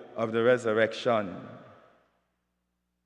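A man speaks calmly through a microphone in an echoing room.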